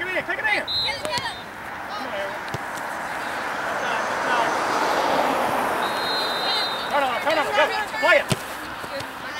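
Young women shout to each other across an open field.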